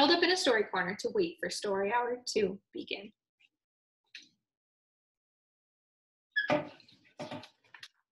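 A young woman speaks calmly and clearly close by, as if reading aloud.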